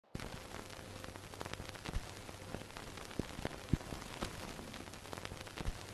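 Old film crackles and pops with a low hum.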